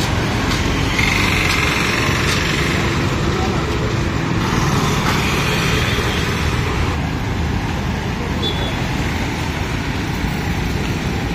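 Motorcycles ride past.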